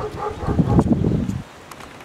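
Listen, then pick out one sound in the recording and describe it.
A man calls out outdoors.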